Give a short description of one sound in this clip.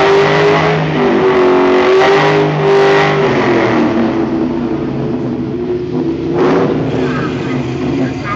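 Tyres screech as they spin on the track.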